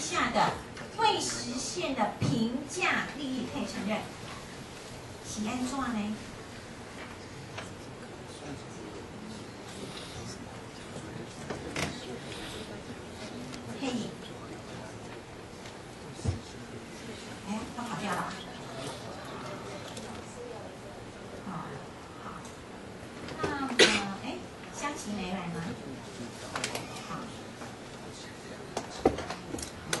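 A woman speaks through a microphone, pausing often.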